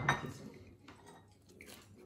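A young woman chews food with her mouth full.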